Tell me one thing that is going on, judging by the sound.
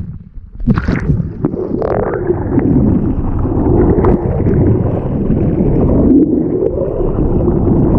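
Water rushes and bubbles with a muffled, underwater rumble.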